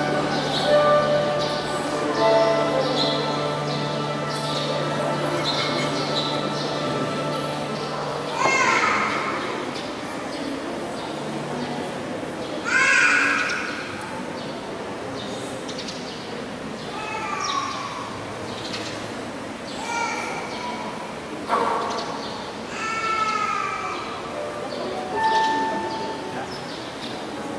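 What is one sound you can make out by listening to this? An older woman speaks calmly through a microphone and loudspeakers in an echoing hall.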